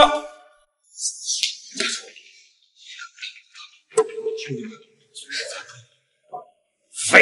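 A man groans in pain and speaks weakly.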